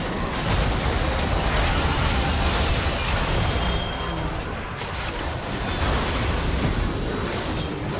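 Spell blasts and weapon hits crash and whoosh in a busy fight.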